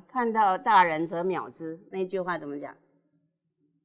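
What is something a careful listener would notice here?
An older woman speaks with animation into a microphone, close by.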